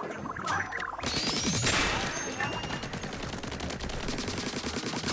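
An ink gun fires in rapid bursts with wet splattering.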